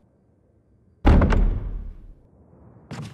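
A heavy wooden door thuds shut.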